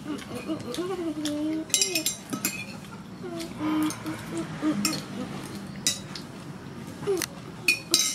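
A spoon scrapes and clinks on a plate.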